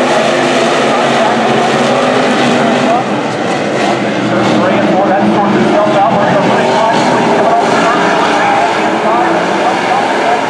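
Race car engines roar loudly as a pack of cars circles a track.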